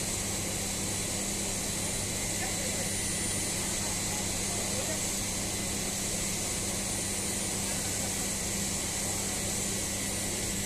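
Steam hisses steadily from a heap of hot material.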